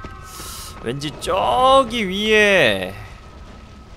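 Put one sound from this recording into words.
A wild beast snarls and growls loudly.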